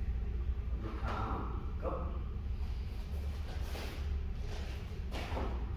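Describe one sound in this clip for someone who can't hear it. Uniform fabric swishes and snaps with quick arm movements.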